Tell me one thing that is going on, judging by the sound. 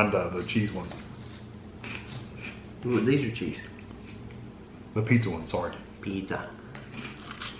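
A middle-aged man speaks calmly close by.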